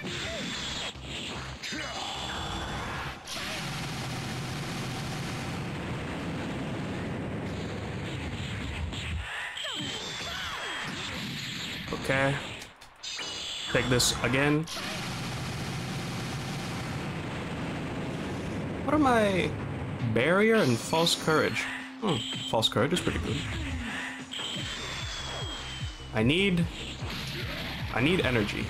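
Energy blasts whoosh and explode in rapid bursts.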